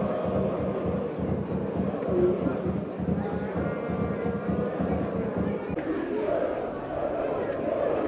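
A large crowd of fans chants and sings loudly outdoors.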